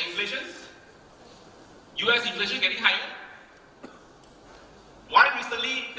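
A man speaks with animation into a microphone over a loudspeaker in a large echoing hall.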